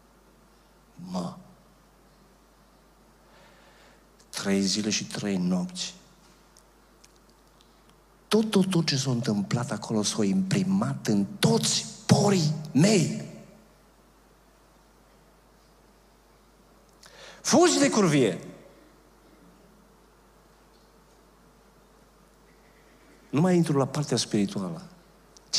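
An older man speaks with animation into a microphone, in short bursts with pauses.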